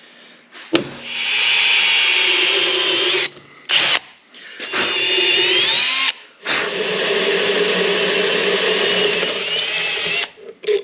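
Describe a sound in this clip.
A drill bit grinds and squeals through metal.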